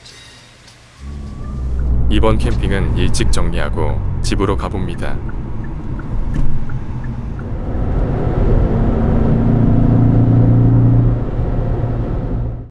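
A car engine hums steadily with road noise from inside the car.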